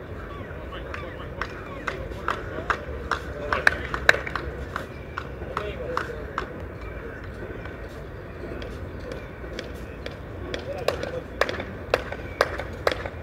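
Spectators chat quietly nearby, outdoors.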